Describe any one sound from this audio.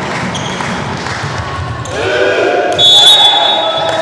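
A volleyball is struck hard on a serve.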